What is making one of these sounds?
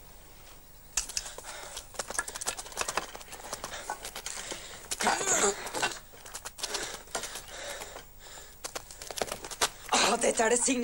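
Footsteps scuff and shuffle on dry ground.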